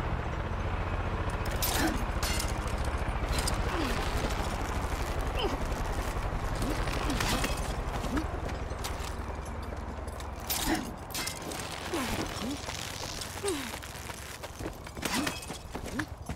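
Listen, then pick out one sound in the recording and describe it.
A rope creaks and rattles during a climb.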